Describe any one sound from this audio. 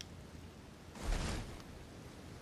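Armour and cloth rustle briefly as a figure drops into a crouch.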